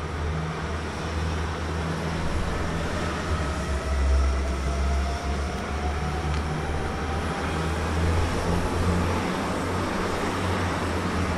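A passenger train rolls along the tracks with a steady rumble and a faint whine.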